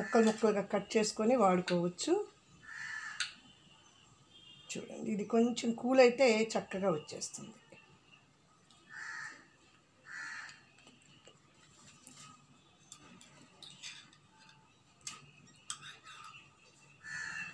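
A knife scrapes and taps against a plate.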